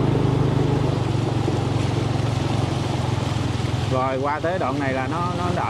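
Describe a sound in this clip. Motorbike engines hum steadily as they ride through floodwater.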